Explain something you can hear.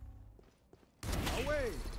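A rifle shot cracks loudly.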